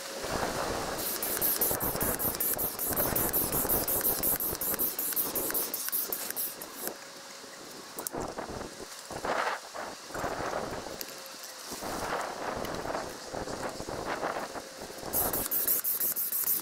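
A hand pump pushes air in rhythmic, hissing strokes.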